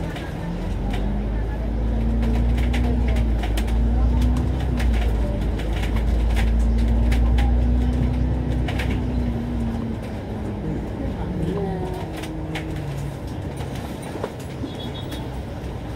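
A bus rattles and creaks as it moves.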